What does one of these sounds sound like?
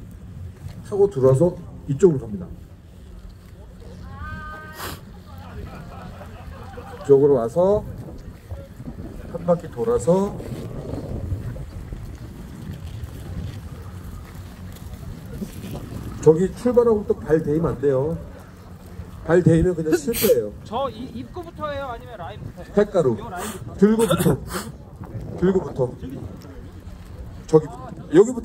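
Men talk loudly nearby outdoors.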